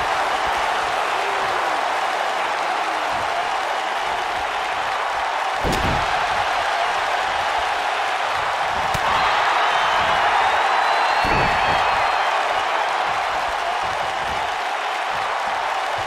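A large crowd cheers and roars steadily, as if in a big arena.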